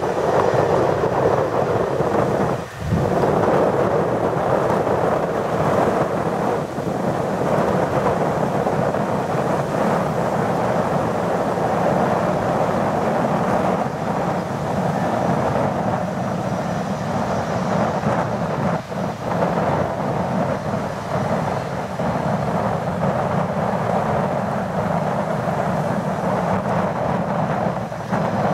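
A jet engine roars loudly and steadily nearby.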